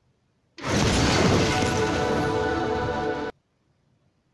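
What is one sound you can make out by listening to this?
A short triumphant game fanfare plays.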